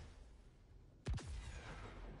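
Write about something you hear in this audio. A loud energy blast booms in a video game.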